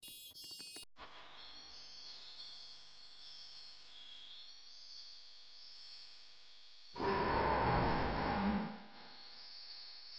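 Cheerful electronic game music plays.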